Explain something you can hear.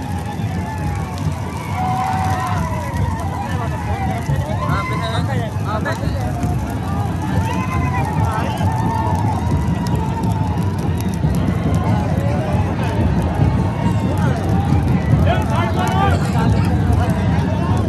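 A large outdoor crowd of men murmurs and chatters.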